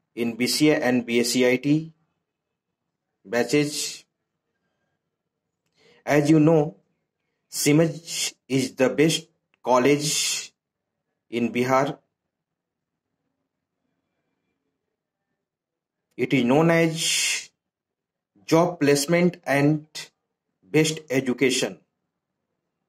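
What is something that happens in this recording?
A middle-aged man speaks calmly and close to the microphone, in short phrases with pauses.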